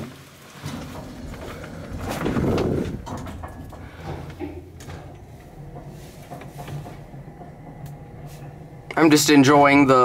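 An elevator hums and rumbles as it moves.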